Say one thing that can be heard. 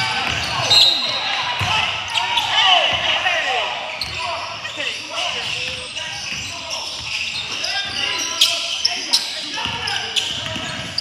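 Basketballs bounce on a hardwood floor, echoing in a large hall.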